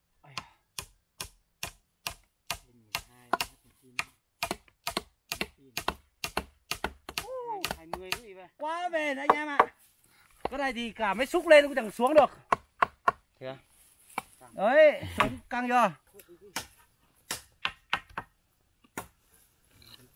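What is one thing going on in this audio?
A machete chops repeatedly into wood.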